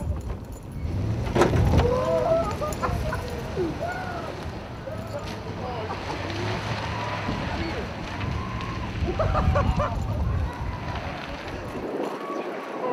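A van engine rumbles as it pulls away.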